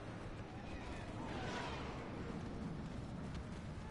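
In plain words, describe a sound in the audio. Laser blasters fire in a distant battle.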